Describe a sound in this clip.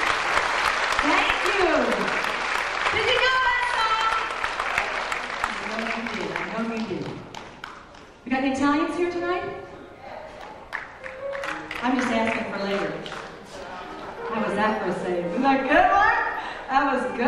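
A woman sings into a microphone in a large hall.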